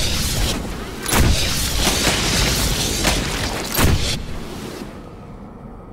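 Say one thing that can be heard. A flamethrower roars in a long burst of fire.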